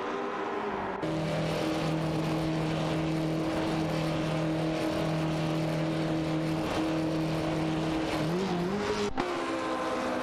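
A racing car engine roars close by, then its pitch dips and climbs again.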